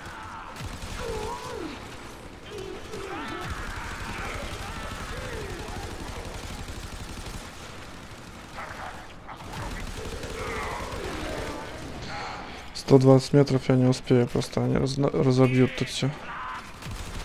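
An energy weapon fires in rapid bursts.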